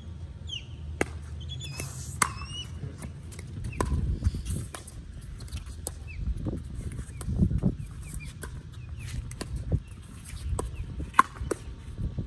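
Paddles sharply pop against a plastic ball outdoors.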